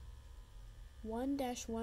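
A short bright game tune plays from a handheld game console's small speakers.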